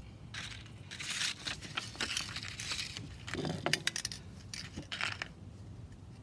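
Sandpaper rustles and crinkles as it is handled.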